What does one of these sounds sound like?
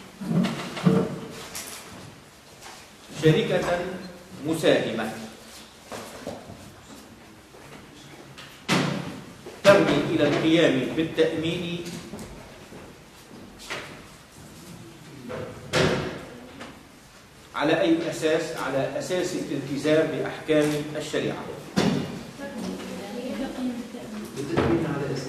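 A man speaks calmly, heard a little distant.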